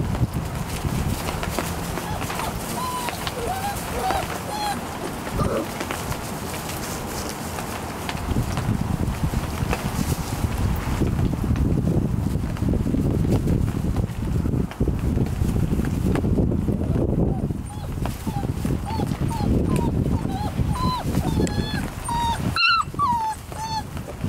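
Puppies scuffle and patter through dry wood shavings.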